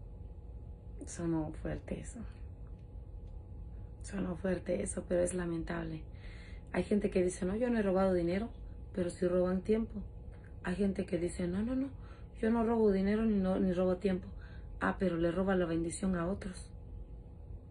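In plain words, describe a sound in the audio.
A woman speaks to the listener up close, with animation.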